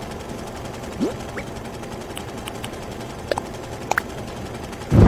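Short menu clicks and blips sound.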